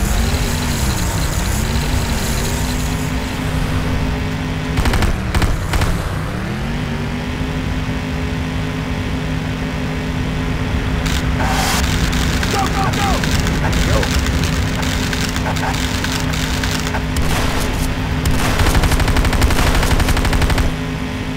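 A vehicle engine hums steadily, its pitch dipping and rising now and then.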